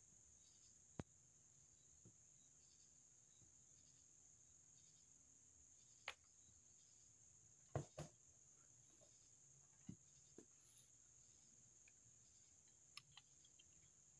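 Metal parts click and clank.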